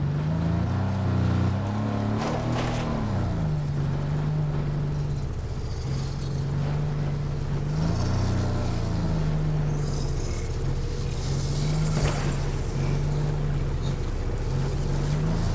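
Tyres roll over rough ground.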